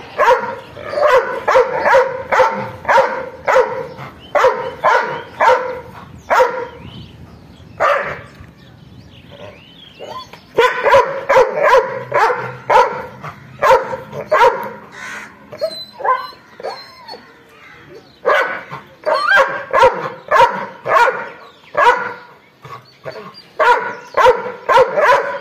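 A dog barks loudly and repeatedly, close by.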